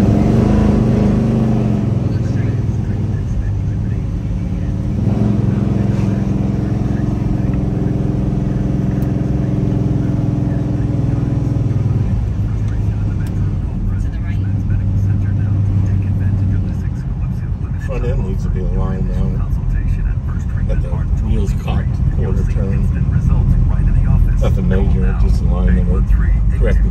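A car engine hums and rumbles steadily from inside the car.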